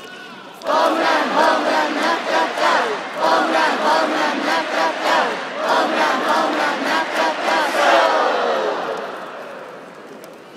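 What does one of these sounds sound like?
A large crowd chants and sings loudly in an echoing stadium.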